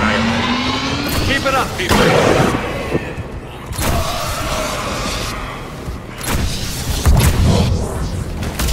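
Fiery explosions boom and roar.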